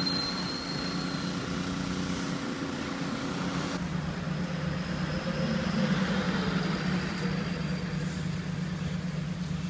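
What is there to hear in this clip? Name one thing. A vehicle engine hums steadily.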